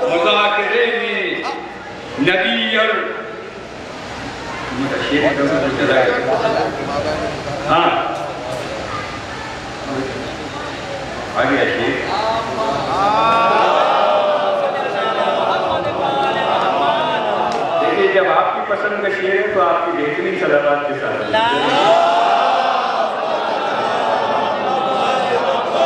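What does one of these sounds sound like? An elderly man speaks with feeling through a microphone and loudspeakers in an echoing hall.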